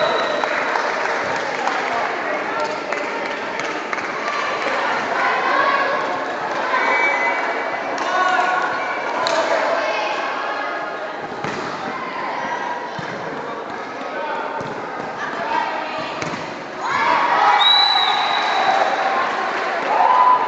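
A crowd of young people chatters and calls out in a large echoing hall.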